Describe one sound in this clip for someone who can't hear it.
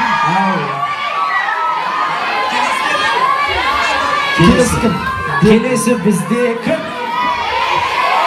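A young man speaks into a microphone over loudspeakers, with animation.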